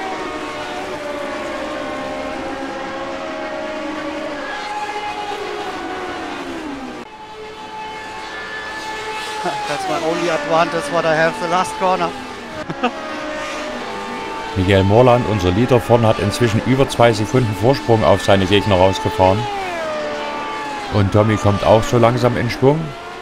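Racing car engines whine at high revs, rising and falling in pitch as cars speed past.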